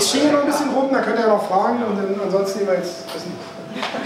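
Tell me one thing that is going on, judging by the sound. A man speaks calmly to an audience, explaining.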